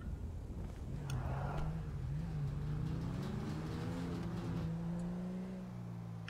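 A car engine revs and hums as a car pulls away.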